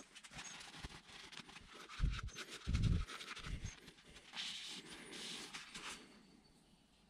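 Cloth rubs and squeaks against metal.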